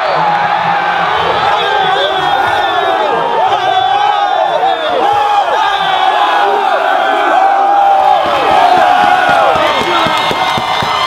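Young men shout and yell excitedly close by.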